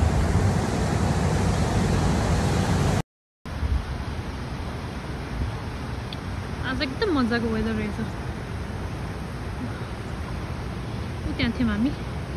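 Water rushes over rocks nearby.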